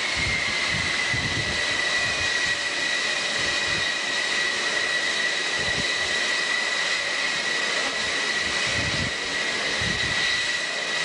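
A jet engine roars and whines loudly and steadily close by.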